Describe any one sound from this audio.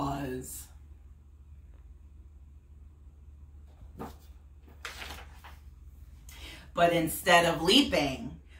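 A woman reads aloud with animation, close by.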